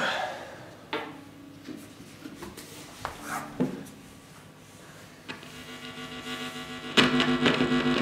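An electric guitar plays notes and chords through an amplifier.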